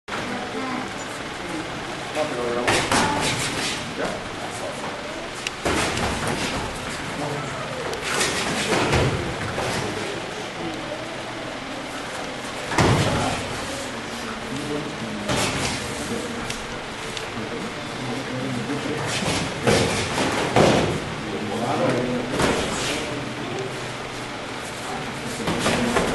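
Feet shuffle and stamp on a padded mat.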